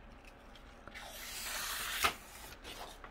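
Paper peels away with a dry crackling rustle.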